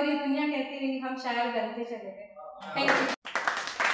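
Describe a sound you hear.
A young woman speaks into a microphone with animation.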